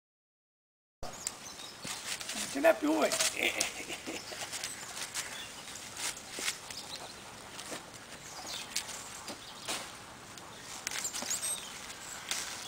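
Olives and twigs patter down onto a net.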